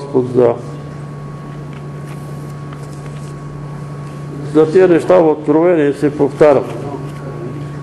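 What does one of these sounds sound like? An elderly man speaks in short bursts into a microphone.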